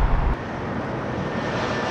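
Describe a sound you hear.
A jet airliner roars overhead.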